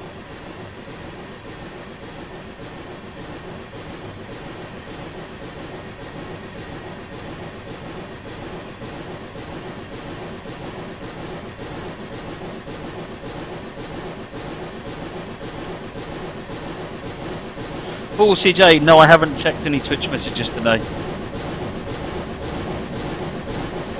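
A steam locomotive chuffs steadily as a train rolls along the rails.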